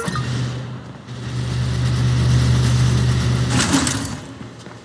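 A garage door rumbles open with a steady mechanical hum.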